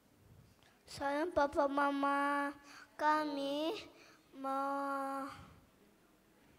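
A woman sings into a microphone over loudspeakers.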